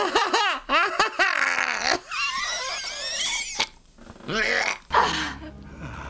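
A man whimpers and groans fearfully, close to a microphone.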